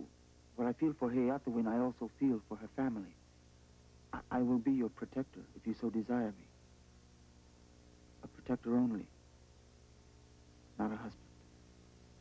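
A man speaks earnestly and steadily, close by, in short phrases with pauses.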